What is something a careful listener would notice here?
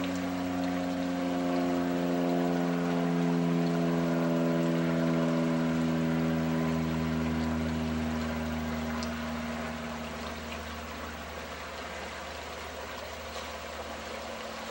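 Shallow river water splashes and swirls around someone wading.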